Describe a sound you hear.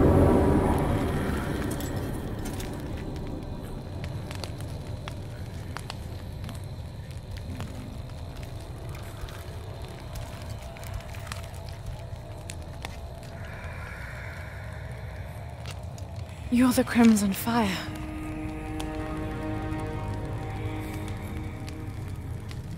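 A large fire roars low and steadily.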